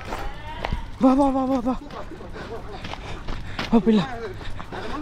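A dog yelps and whines close by.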